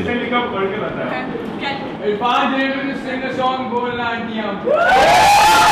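A group of young people chatter and talk in a room.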